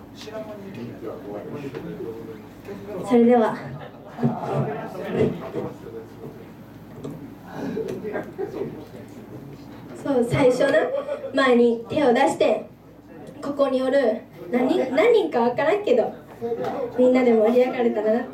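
Young women speak with animation through microphones in an echoing hall.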